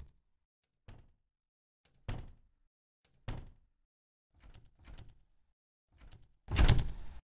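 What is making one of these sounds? Footsteps thud at an even pace on a hard floor.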